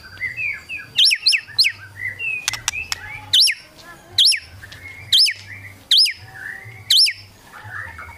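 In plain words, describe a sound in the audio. A songbird gives sharp, rising whistles over and over.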